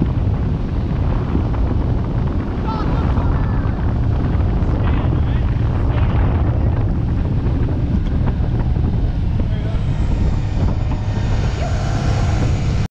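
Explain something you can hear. Wind buffets loudly and steadily, as on a fast boat in open air.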